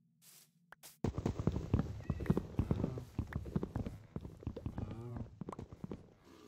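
An axe chops wood in quick repeated knocks.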